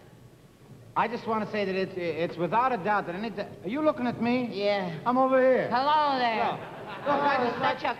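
A young man answers in a lively voice.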